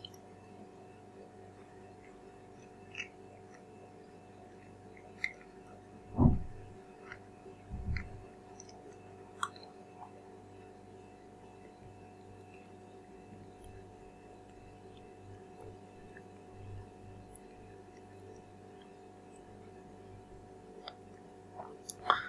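A young man chews food with wet, smacking mouth sounds close by.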